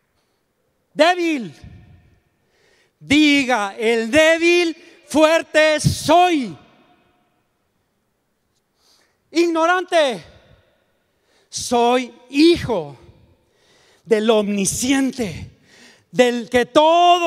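An elderly man speaks with animation into a microphone, heard through loudspeakers in a large hall.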